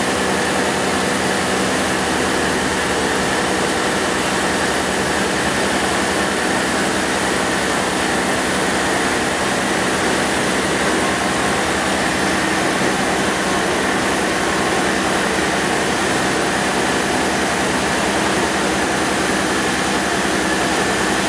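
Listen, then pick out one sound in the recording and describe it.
A milling machine cuts metal with a steady, loud grinding whine.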